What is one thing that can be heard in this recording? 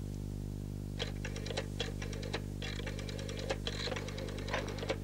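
A rotary telephone dial clicks as it turns and whirs back.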